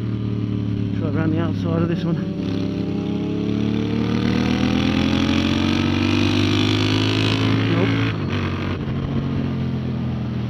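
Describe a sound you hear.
A motorcycle engine roars loudly up close, rising and falling in pitch as it accelerates.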